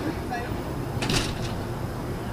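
A storm door bangs shut.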